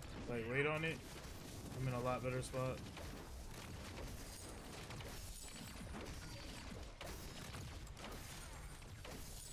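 Weapons clash and small explosions burst in a fast fight.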